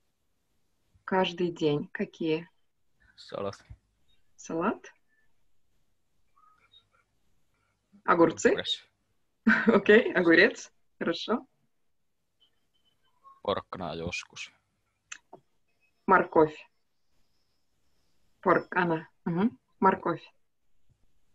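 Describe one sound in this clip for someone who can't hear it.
A young woman speaks calmly and slowly over an online call, pausing between phrases.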